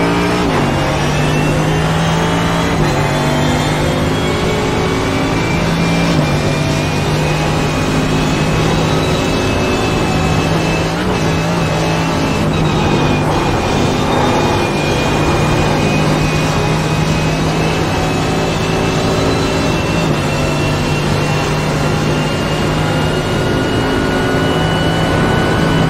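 A racing car engine roars loudly at high revs, shifting up through the gears.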